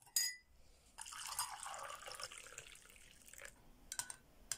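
Water pours from a kettle into a cup.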